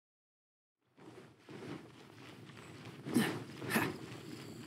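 Running footsteps patter on stone.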